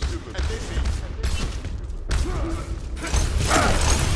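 Rapid gunfire crackles nearby.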